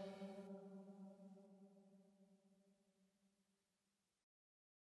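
A man sings a long held note that slowly fades away.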